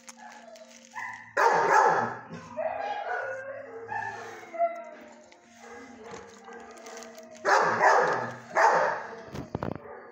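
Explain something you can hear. A dog whines close by.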